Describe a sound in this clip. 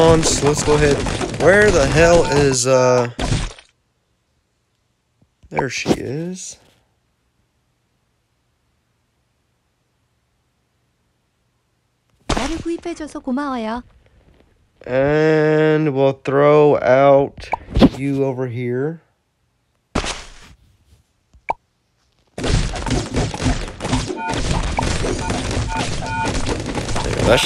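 Balloons pop in quick bursts of small cartoon pops.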